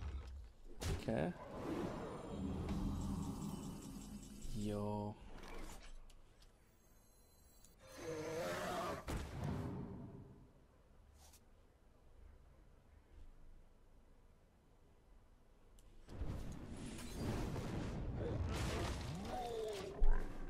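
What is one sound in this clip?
Chimes and whooshes of a card game's sound effects play as cards are played.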